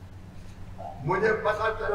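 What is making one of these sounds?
A man speaks forcefully through a microphone and loudspeakers.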